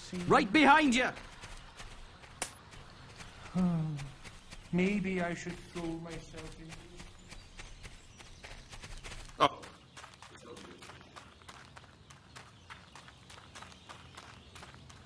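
Footsteps run quickly over grass and soil.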